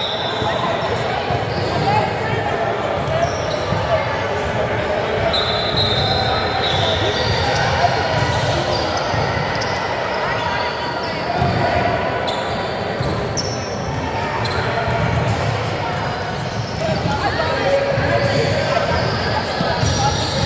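Young women call out and chatter across the court.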